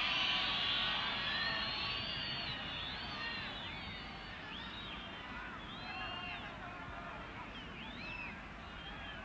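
A stadium crowd whistles and jeers throughout, loudest at first and slowly easing.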